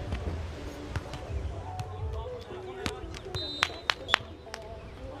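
A volleyball is struck by hands with sharp smacks.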